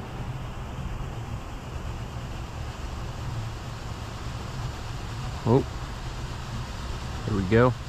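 Wind buffets the microphone outdoors with a low, steady rumble.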